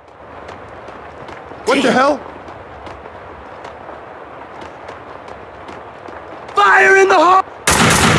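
Footsteps run on a hard floor.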